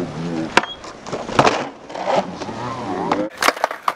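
A skateboard clacks sharply as it lands on concrete.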